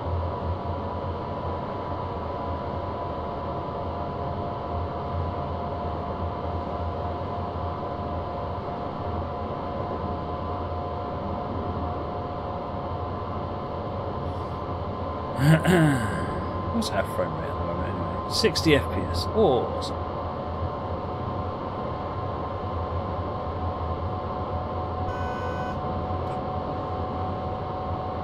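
An electric train hums and rumbles steadily along the track.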